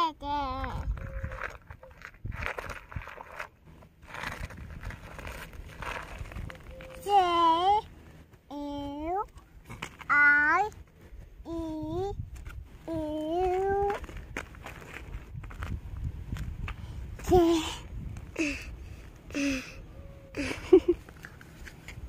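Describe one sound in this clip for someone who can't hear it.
A young child talks and babbles in a high voice close by.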